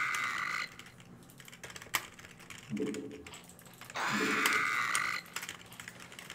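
Game sound effects chime and click.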